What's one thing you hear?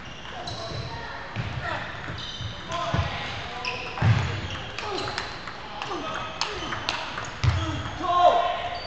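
A ping-pong ball clicks back and forth on paddles and a table in a large echoing hall.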